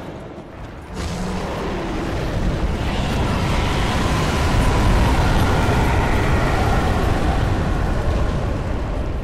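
A great fire roars loudly.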